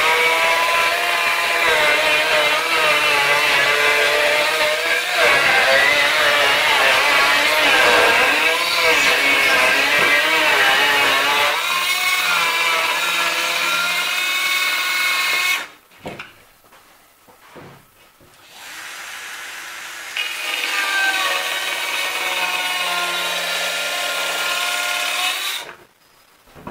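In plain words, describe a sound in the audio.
A circular saw whines loudly as it cuts through wood.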